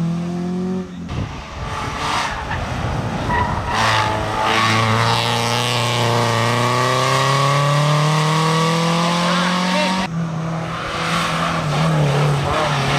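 A third rally car engine roars in, climbing in pitch as it accelerates.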